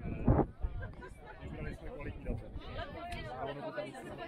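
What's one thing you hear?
People chatter nearby in a crowd of men and women.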